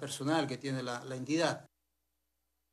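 A middle-aged man speaks calmly into microphones close by.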